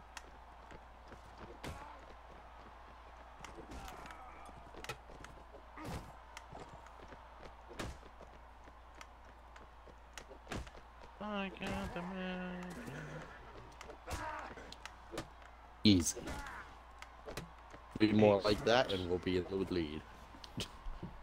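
Horses' hooves thud on dry ground.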